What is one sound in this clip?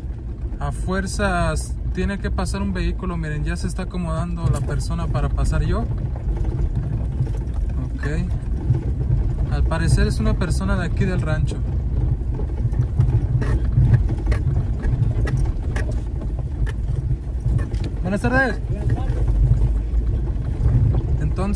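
A car's body rattles and knocks over ruts.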